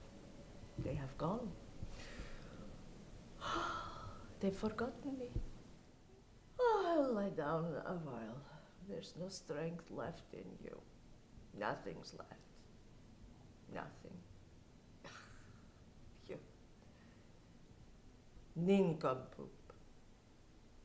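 A woman speaks calmly nearby, with long pauses.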